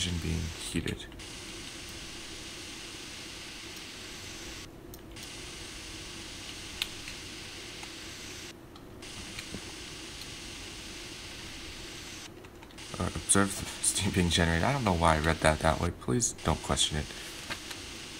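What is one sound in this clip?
Steam hisses steadily in a locomotive boiler.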